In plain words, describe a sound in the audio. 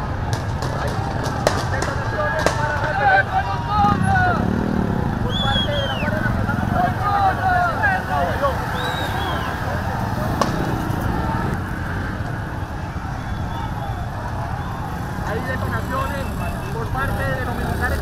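A crowd of men shout in alarm outdoors.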